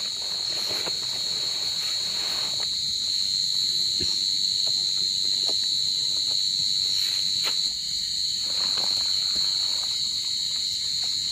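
Nylon tent fabric rustles and crinkles as it is handled.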